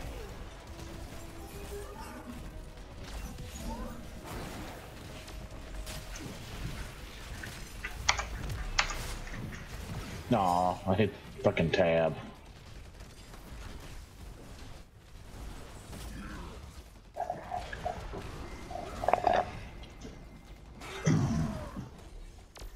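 Weapons blast and zap in a fast fight.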